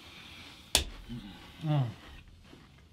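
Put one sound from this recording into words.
A young man makes a short voiced sound.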